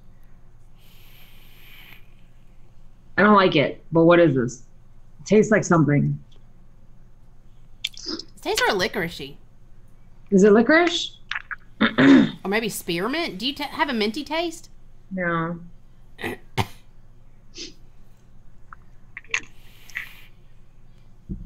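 A woman exhales vapour with a soft hiss.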